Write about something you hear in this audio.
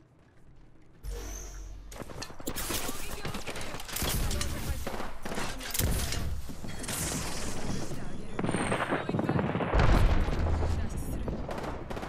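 Rapid gunfire crackles in a video game.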